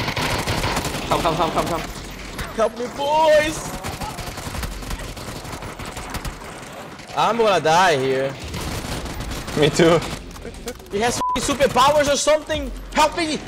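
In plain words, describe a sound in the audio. A young man talks animatedly into a headset microphone.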